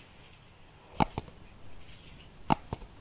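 A plastic switch box clicks as it is handled.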